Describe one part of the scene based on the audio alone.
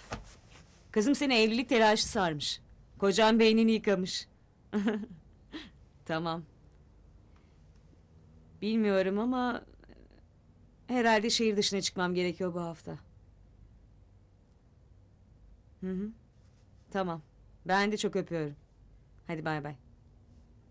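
A young woman talks on a phone close by, in short calm bursts.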